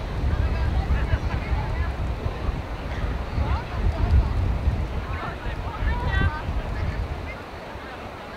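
Wind buffets outdoors.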